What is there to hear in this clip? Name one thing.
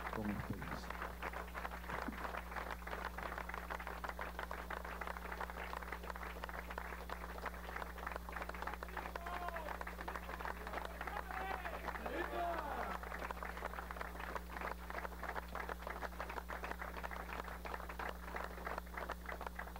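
A crowd applauds steadily.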